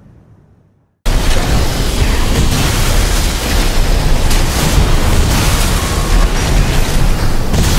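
Laser beams fire and crackle with loud electric blasts.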